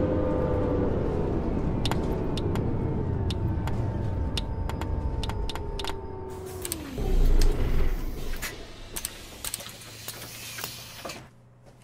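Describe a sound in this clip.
A city bus's diesel engine runs and then winds down as the bus slows to a stop.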